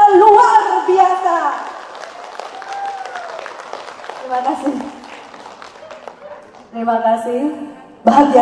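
A woman speaks with animation into a microphone in a large echoing hall.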